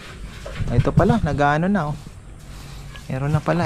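A trowel scrapes plaster onto a wall.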